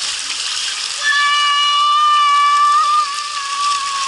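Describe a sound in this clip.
A boy whooshes down a wet slide.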